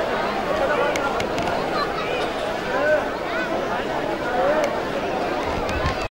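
A large crowd of men chants and shouts together outdoors.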